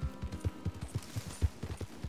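Leafy branches rustle as a horse pushes through a bush.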